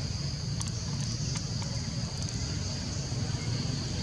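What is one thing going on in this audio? A small monkey scuffles through dry leaves on the ground.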